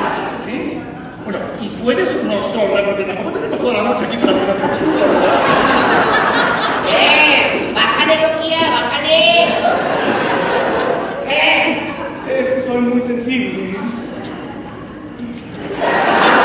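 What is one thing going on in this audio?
A woman speaks dramatically.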